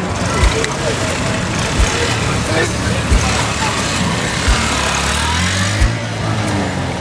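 A motorcycle engine rumbles past close by.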